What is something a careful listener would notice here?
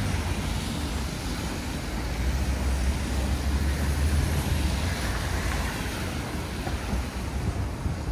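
Cars drive past slowly.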